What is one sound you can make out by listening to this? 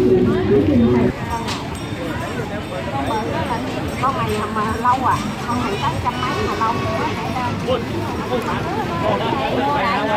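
Food sizzles on a charcoal grill.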